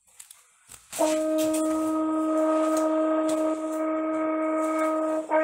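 A French horn plays one long, steady note through a small speaker.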